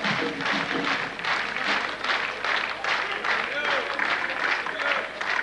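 A large crowd claps rhythmically in a big hall.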